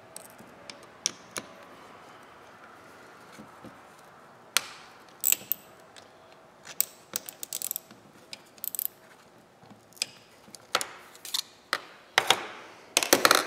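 Metal tools clink and clack against each other.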